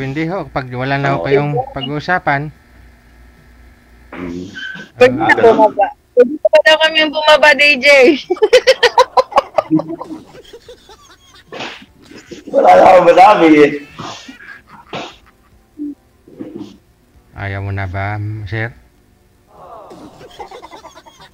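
A middle-aged woman talks and laughs over an online call.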